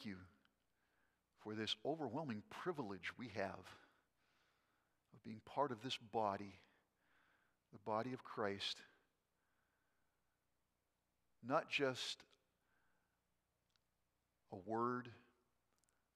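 An older man speaks calmly and slowly into a microphone, with pauses between phrases.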